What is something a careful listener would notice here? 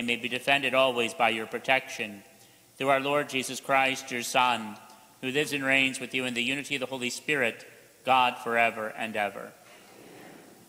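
A man chants loudly through a microphone in a large echoing hall.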